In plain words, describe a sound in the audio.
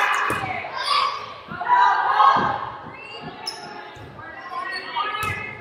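A volleyball is struck with sharp thuds in an echoing gym.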